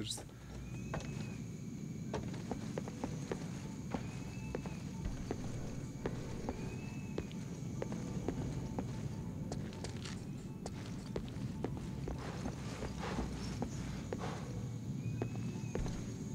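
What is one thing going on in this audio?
Footsteps thud steadily on wooden planks.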